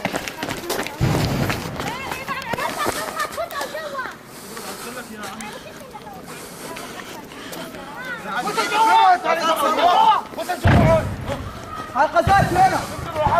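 Heavy explosions boom nearby outdoors.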